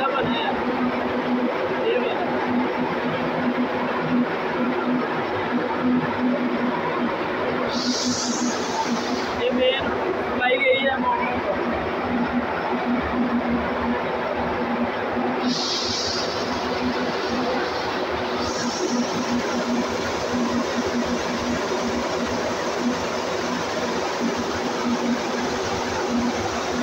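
Electrical equipment hums steadily.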